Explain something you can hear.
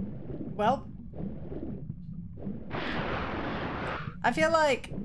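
A young woman talks close to a microphone, with animation.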